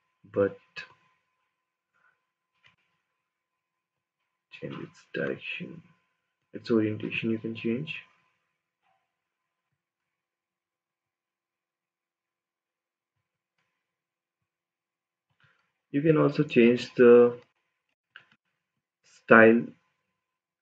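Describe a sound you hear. A young man speaks calmly into a close microphone, in short bursts with long pauses.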